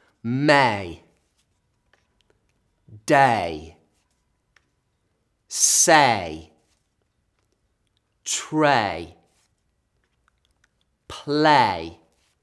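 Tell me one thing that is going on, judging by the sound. A young man reads single words out clearly and cheerfully, close to the microphone, with pauses between them.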